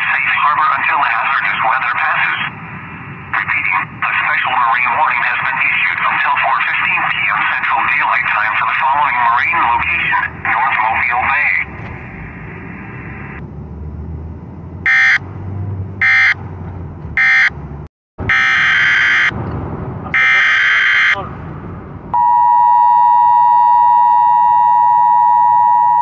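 A radio broadcast plays through a small phone speaker.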